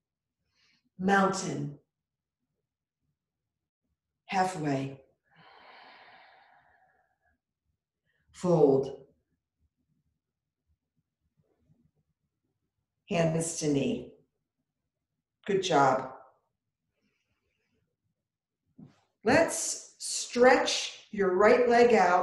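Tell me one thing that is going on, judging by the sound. An elderly woman speaks calmly in short phrases, giving instructions.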